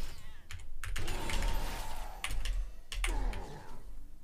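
Game spells burst and crackle in a fight.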